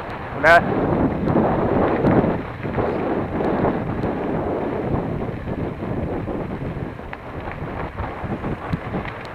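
Mountain bike tyres crunch over a gravel track, rolling downhill.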